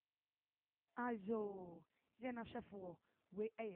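A woman speaks loudly and with animation.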